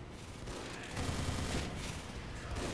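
A flamethrower roars in short bursts.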